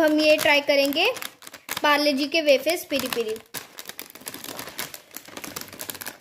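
A plastic snack wrapper crinkles and rustles in someone's hands.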